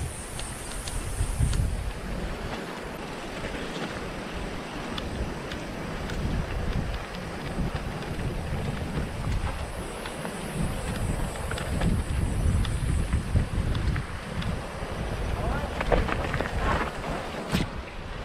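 Wind rumbles over a microphone outdoors.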